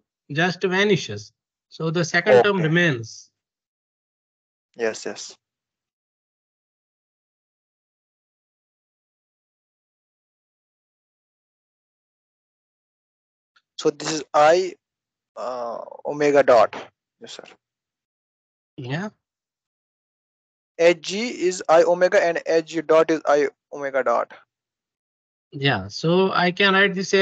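A young man speaks calmly over an online call, pausing now and then.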